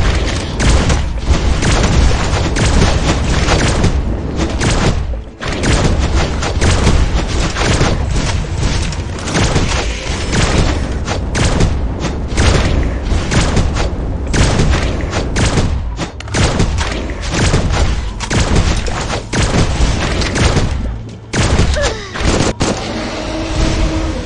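Rapid gunfire crackles without a break.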